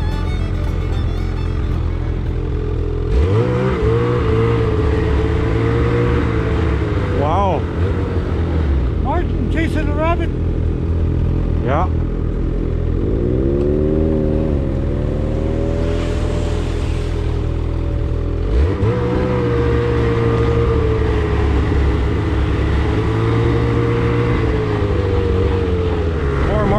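A snowmobile engine revs up and drives on.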